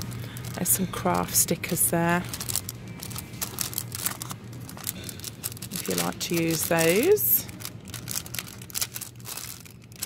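Plastic sticker packets rustle and crinkle as they are flipped through by hand.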